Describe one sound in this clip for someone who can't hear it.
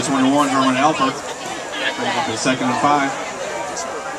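Young men on a sideline shout and cheer loudly nearby, outdoors.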